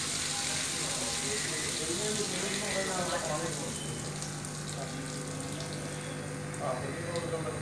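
Water splashes onto the ground at an elephant's feet.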